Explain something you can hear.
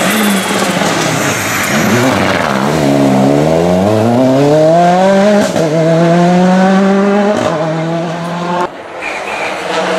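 Tyres hiss on a wet road as a rally car speeds by.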